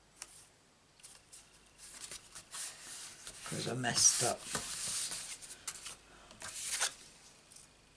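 Paper cards rustle and slide across a table close by.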